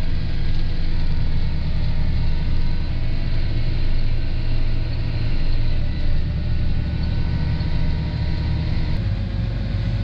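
Tractor tyres roll along a gravel road.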